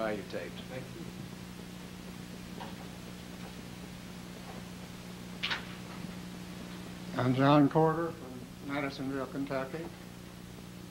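An elderly man speaks slowly into a microphone, heard through a loudspeaker.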